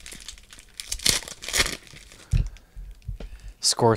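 A plastic wrapper crinkles and tears close by.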